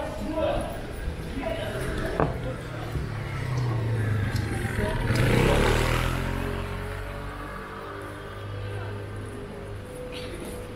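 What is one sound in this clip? Footsteps of passersby tap on the pavement.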